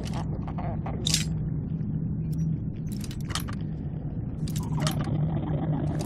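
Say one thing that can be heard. Metal lock picks click and scrape inside a lock.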